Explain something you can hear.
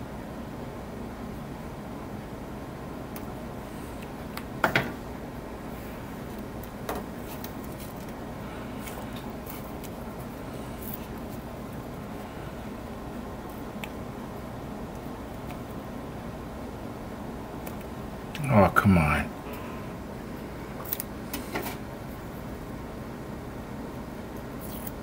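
Adhesive tape peels and crackles as hands pull it.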